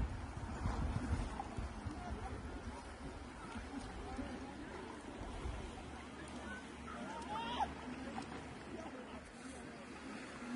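Small waves lap against rocks on the shore.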